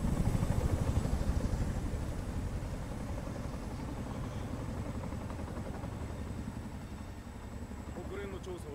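A helicopter's rotor thumps loudly close by, then fades a little as it lifts away.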